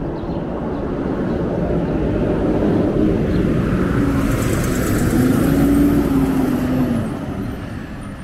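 A heavy truck rumbles loudly past close by.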